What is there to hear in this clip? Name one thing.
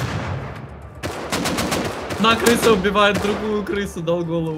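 Rifle shots crack loudly and echo away.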